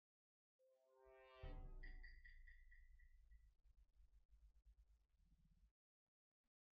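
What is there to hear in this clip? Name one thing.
A game's deep, ominous reveal sound swells and then fades.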